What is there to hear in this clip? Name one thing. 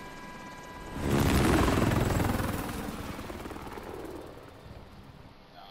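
A helicopter roars as it flies past.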